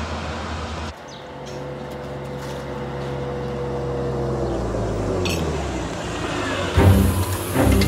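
A car engine hums as a car drives along a dirt track.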